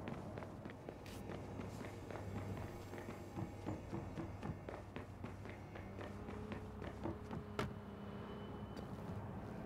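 Footsteps run quickly across wooden floors.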